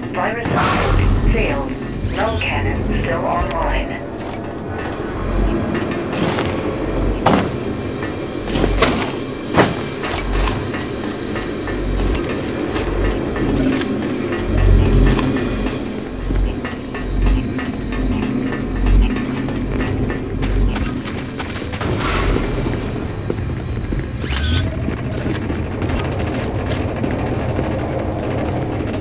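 Gunshots crack and booms thud in a noisy battle.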